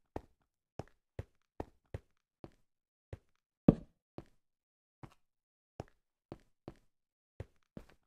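Footsteps tread on stone at a brisk walking pace.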